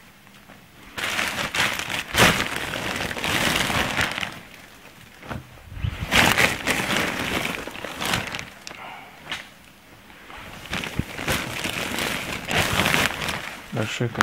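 A plastic bag crinkles and rustles loudly.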